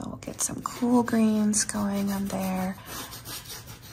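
A paintbrush dabs and strokes softly on canvas.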